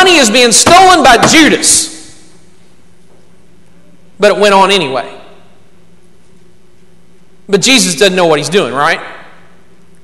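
A man speaks with emphasis through a microphone in an echoing room, pausing between phrases.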